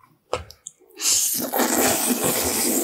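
A man loudly slurps noodles close to a microphone.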